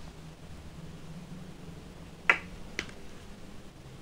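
A plastic cap clicks open on a squeeze tube.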